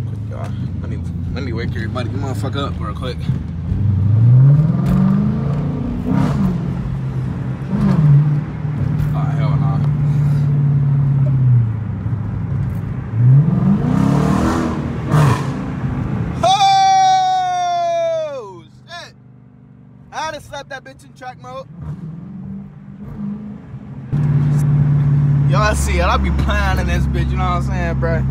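A car engine roars, revving up and down loudly from inside the car.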